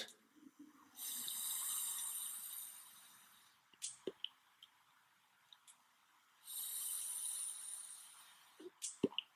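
An electronic cigarette crackles and hisses as a man inhales.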